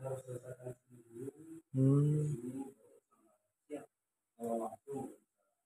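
A man speaks calmly nearby, in short bursts.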